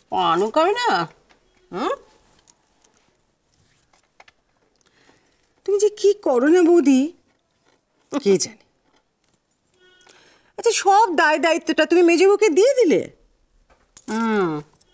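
An elderly woman speaks close by in reply.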